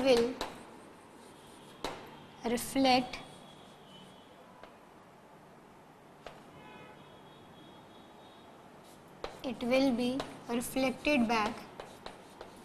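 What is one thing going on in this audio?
A young woman speaks clearly in a lecturing tone, close by.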